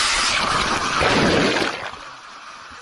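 A person splashes into a pool.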